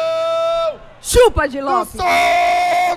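Men cheer and shout excitedly.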